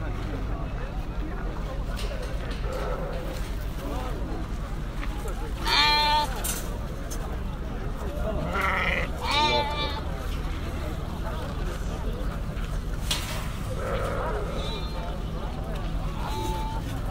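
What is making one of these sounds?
A crowd of men chatters in the background outdoors.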